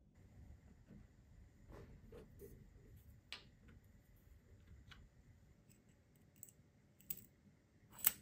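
Small metal parts clink and tap on a wooden tabletop.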